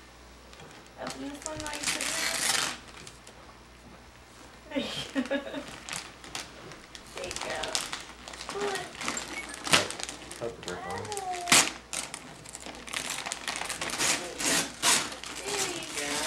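Wrapping paper rustles and crinkles as a gift is unwrapped.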